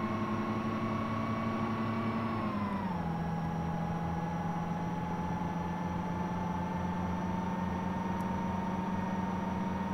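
A heavy truck engine drones steadily and drops in pitch as it shifts gear.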